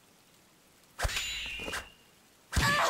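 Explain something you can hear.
Metal blades clash with a sharp ring.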